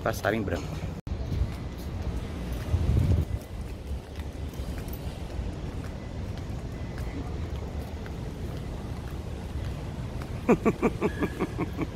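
Footsteps walk along a pavement.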